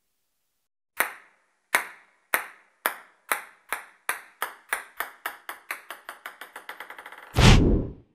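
A table tennis ball bounces on a hard surface, faster and faster until it settles.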